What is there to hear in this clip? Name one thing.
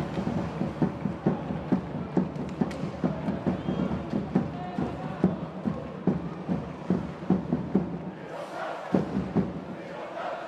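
A crowd claps in a steady rhythm in a large echoing arena.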